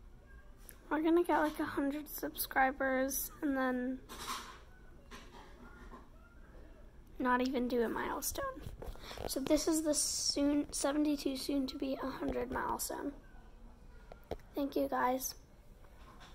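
A young girl talks close to the microphone in a high voice, with pauses.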